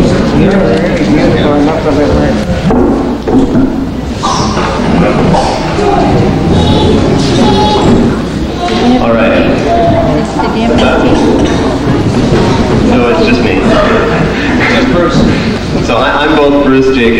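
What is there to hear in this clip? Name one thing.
A crowd of elderly men and women chatter together in a busy room.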